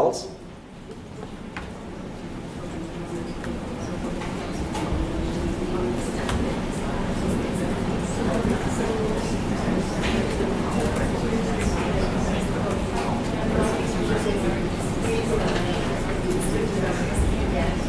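Keys clatter on a laptop keyboard.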